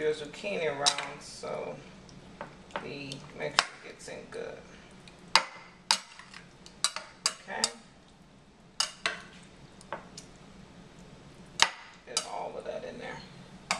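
Liquid pours into a dish with a soft splashing.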